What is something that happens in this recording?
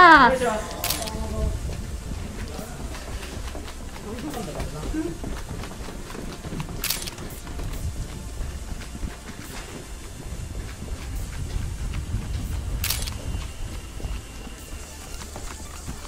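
Footsteps walk down steps and along a paved path outdoors.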